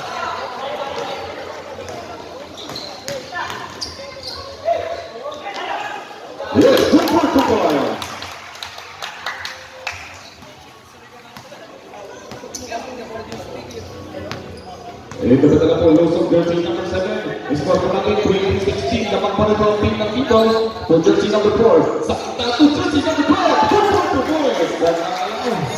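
A crowd of spectators cheers and shouts in an open-air court.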